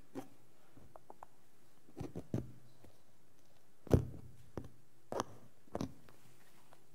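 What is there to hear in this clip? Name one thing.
A microphone rustles and knocks as it is handled close up.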